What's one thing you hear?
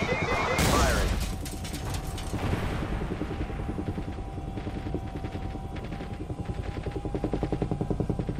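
A helicopter engine whines steadily.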